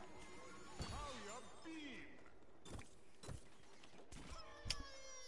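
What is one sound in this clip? Cartoonish explosions burst with bright, crackling blasts.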